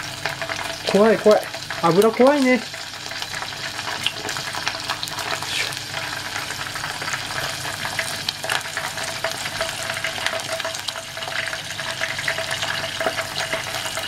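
Food sizzles and crackles softly in a pan.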